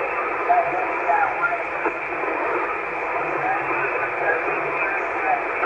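Static hisses steadily from a radio receiver's loudspeaker.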